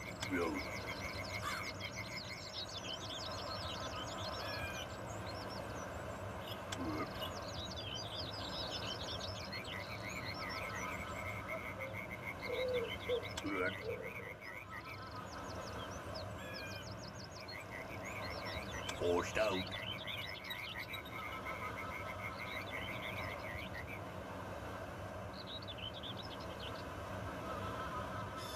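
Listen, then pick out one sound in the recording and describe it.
Water laps gently against a shore.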